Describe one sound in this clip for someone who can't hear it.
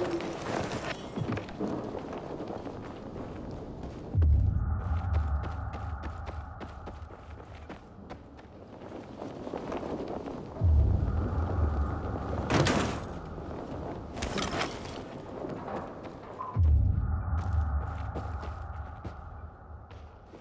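Footsteps crunch over debris on a wooden floor.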